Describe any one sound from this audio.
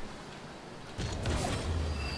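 A ball is struck with a hollow thump.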